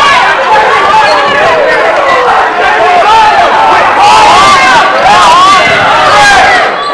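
A large crowd of people chatters and calls out loudly in an echoing hall.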